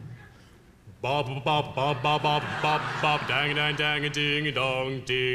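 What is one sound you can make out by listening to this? A young man sings solo through a microphone in a large hall.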